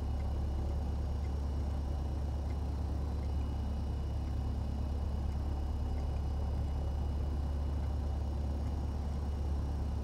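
A small propeller aircraft engine idles with a steady low drone.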